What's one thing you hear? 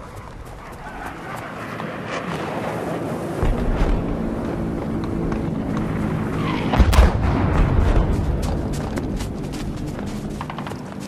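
A propeller plane drones overhead and fades away.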